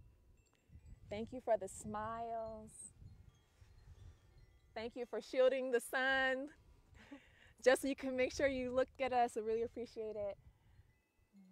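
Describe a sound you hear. A woman sings a slow, wavering chant nearby.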